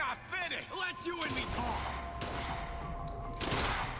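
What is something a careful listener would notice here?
A metal shutter slides open with a mechanical rumble.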